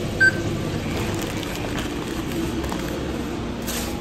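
A paper bag rustles and crinkles.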